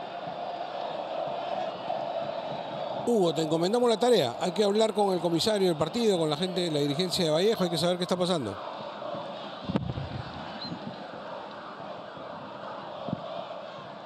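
A large stadium crowd murmurs and cheers in the distance.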